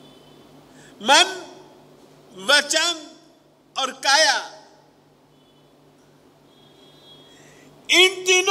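An elderly man speaks forcefully into a microphone in bursts, with pauses between.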